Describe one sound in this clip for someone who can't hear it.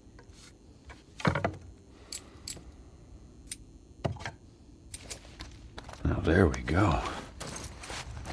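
A wooden bow clicks and creaks as it is handled.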